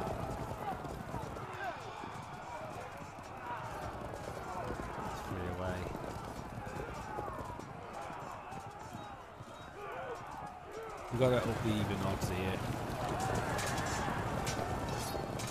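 Horse hooves thunder across the ground.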